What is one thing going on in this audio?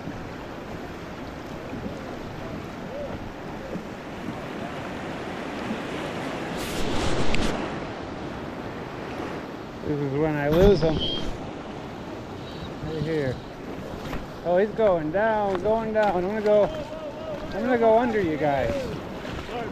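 A river rushes over rocks close by.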